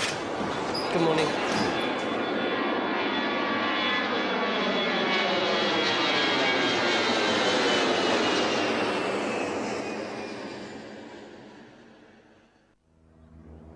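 A jet plane roars loudly overhead and slowly fades away.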